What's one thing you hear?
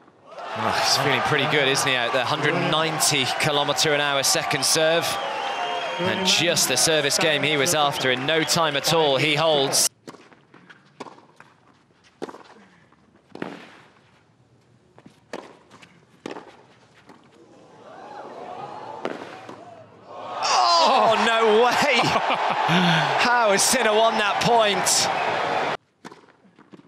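A large crowd cheers, whistles and applauds loudly in a big open arena.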